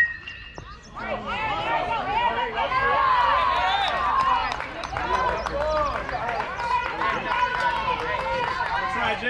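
A crowd of young spectators cheers and shouts nearby.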